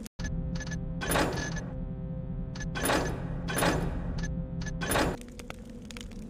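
Menu buttons click softly several times.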